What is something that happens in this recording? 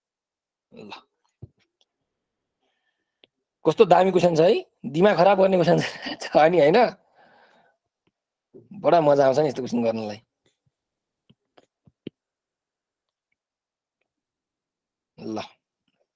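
A man explains calmly, heard through a microphone.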